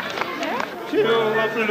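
People clap in an indoor hall.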